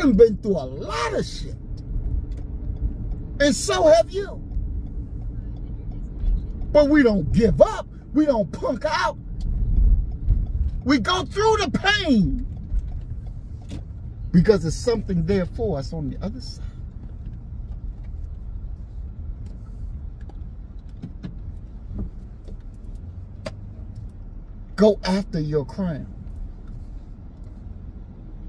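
A car engine hums low and steady inside a moving car.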